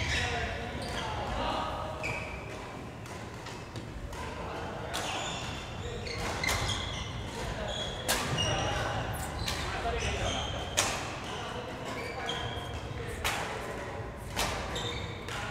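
Shuttlecocks are struck sharply with rackets, again and again, echoing in a large hall.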